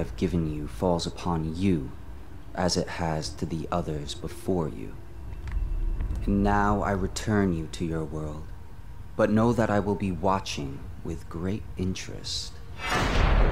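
A young man speaks calmly and slowly, close by.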